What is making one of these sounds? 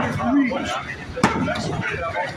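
A hand slaps hard against a wrestling mat.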